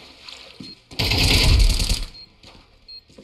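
A rifle fires a rapid burst.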